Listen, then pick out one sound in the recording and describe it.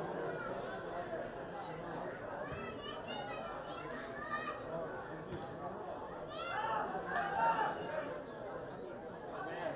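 A small crowd murmurs and calls out in an open stadium.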